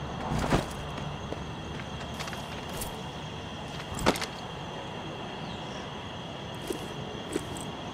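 A bowstring creaks as it is drawn and snaps when released.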